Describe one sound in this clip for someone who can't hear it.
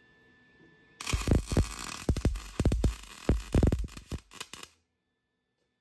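A welder crackles and buzzes in short bursts.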